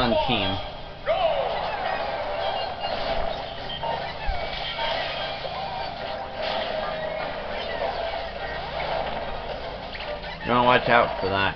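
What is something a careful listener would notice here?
Video game fighting sound effects hit and whoosh rapidly.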